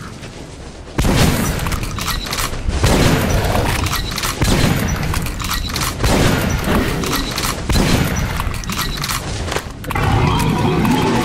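Rifle shots fire in repeated bursts, loud and close.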